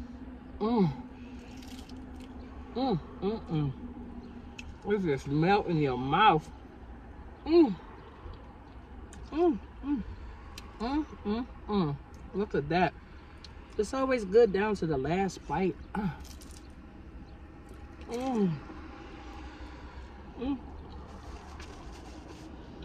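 A woman chews and smacks her lips while eating.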